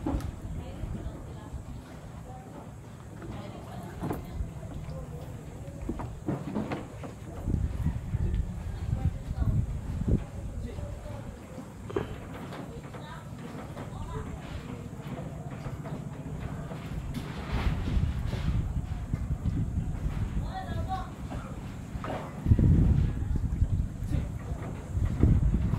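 Shallow water laps gently against wooden posts and boats.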